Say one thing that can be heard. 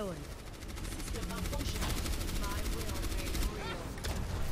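A video game pistol fires in rapid bursts.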